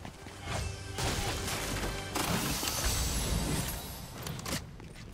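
A treasure chest creaks open with a shimmering jingle.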